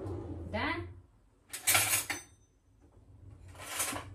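Cutlery rattles in a drawer.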